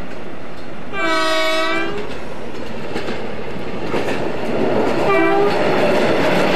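A train horn sounds loudly twice.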